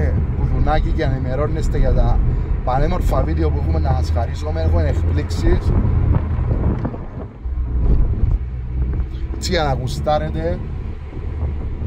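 A man talks nearby in a car.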